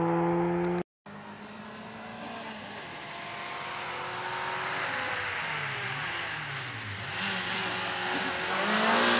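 A rally car engine approaches from afar, growing louder.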